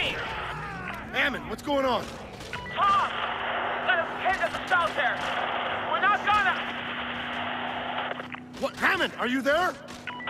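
A mounted machine gun fires in short bursts.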